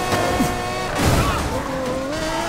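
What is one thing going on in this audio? A car crashes against a wall with a loud thud.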